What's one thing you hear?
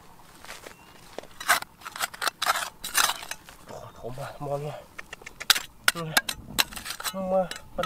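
A metal trowel scrapes and digs into dry, stony soil.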